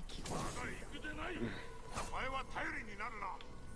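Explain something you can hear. A blade swings and clangs in a fight.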